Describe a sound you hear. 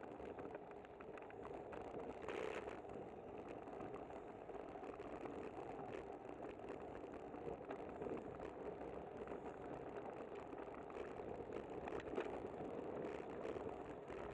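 Car traffic rumbles nearby.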